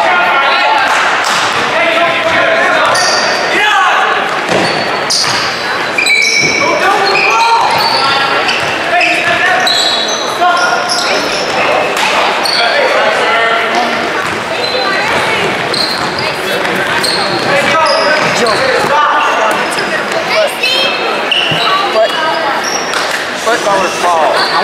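A basketball thuds as it is dribbled on a wooden floor.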